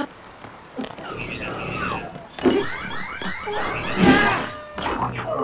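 Monsters grunt and squeal close by.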